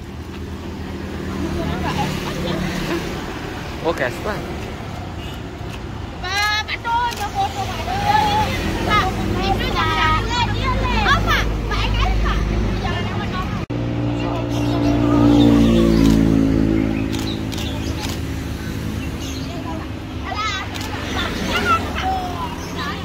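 A motorbike engine hums as it passes by on the road.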